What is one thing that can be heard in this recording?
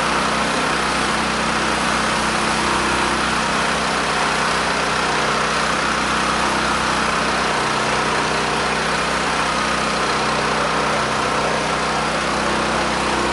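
Water sprays hard from a hose with a steady, loud hiss.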